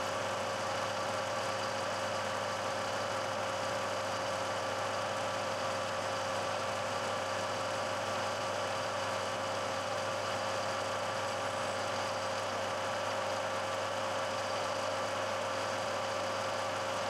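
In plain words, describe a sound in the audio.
A cutter grinds steadily into metal.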